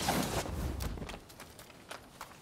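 Footsteps tap lightly on a tiled roof.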